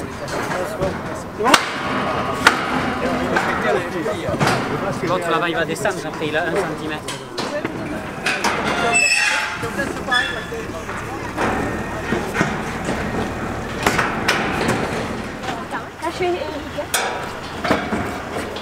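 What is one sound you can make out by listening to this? Metal scaffold tubes clank together.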